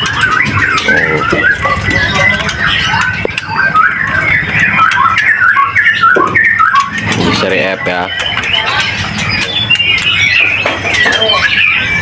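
Caged songbirds chirp and whistle rapidly and busily, close by.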